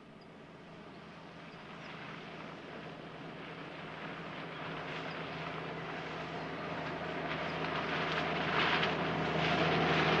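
A Jeep engine drives over rough ground.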